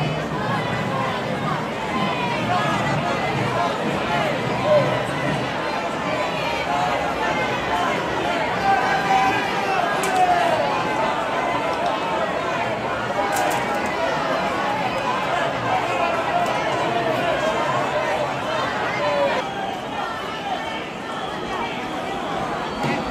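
A large crowd chatters and calls out all around, outdoors.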